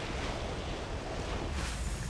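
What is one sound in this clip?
A magical blast bursts with a crackle.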